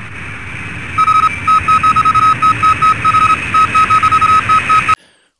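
A computer terminal beeps rapidly as text is typed out.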